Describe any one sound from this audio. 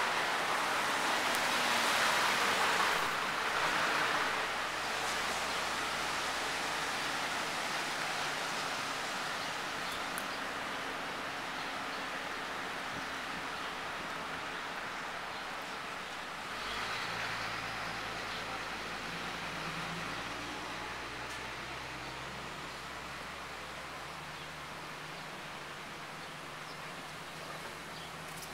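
Wind blows steadily outdoors, gusting louder at times.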